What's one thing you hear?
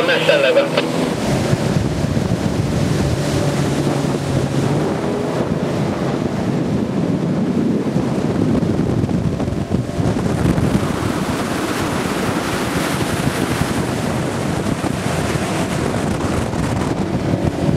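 A motorboat engine roars at speed.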